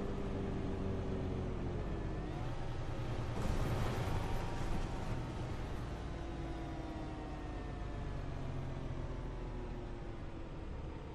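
A bus engine hums steadily and changes pitch as the bus turns and speeds up.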